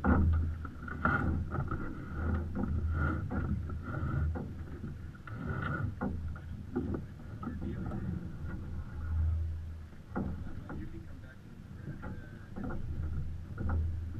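Sails and rigging flap and rattle in the wind.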